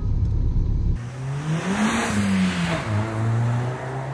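A car drives past with its engine revving.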